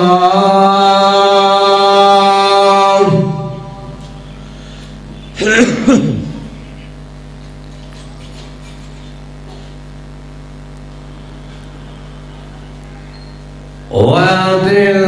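A man chants in long, drawn-out tones into a microphone, with pauses between phrases.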